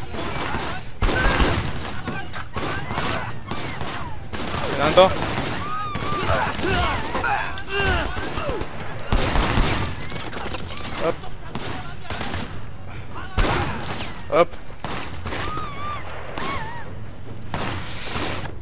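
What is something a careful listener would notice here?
Gunshots crack and echo.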